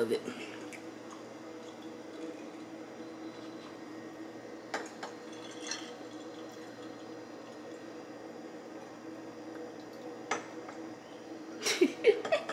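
Liquor pours from a bottle into a glass with a steady gurgle.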